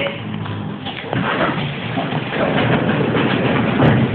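Train doors slide open.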